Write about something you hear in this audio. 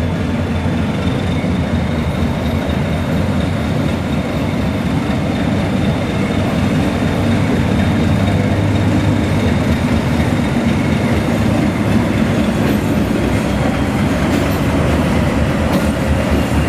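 A diesel locomotive engine rumbles steadily nearby.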